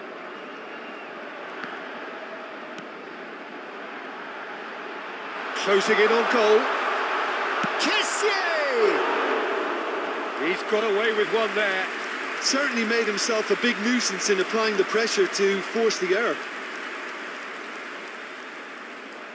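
A stadium crowd roars steadily, swelling loudly for a few seconds before settling.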